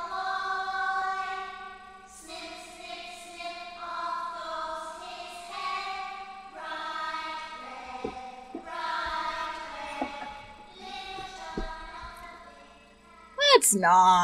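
A young woman sings in a wavering voice close to a microphone.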